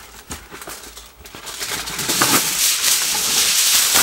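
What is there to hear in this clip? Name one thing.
A plastic bag rustles as soil pours out.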